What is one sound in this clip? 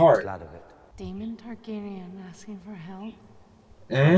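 A woman speaks calmly and quietly.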